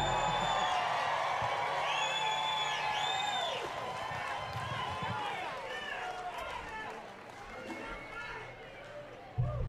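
A band plays funky music with gliding, whistling synth tones in a large hall.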